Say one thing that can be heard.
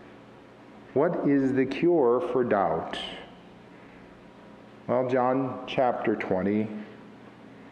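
A man speaks calmly into a microphone in a large echoing room.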